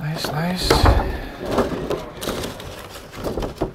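Cardboard rustles and scrapes as a box lid is handled.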